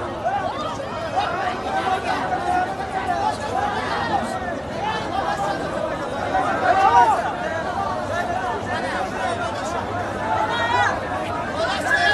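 A large crowd of men shouts and clamours outdoors.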